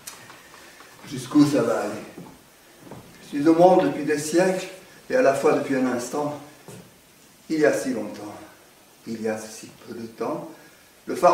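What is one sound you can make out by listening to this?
An elderly man speaks with feeling, his voice echoing slightly in a hall.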